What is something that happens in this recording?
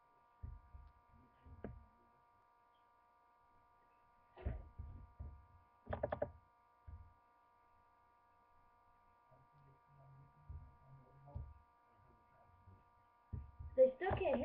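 A young girl speaks softly and quietly close to a microphone, in short bursts.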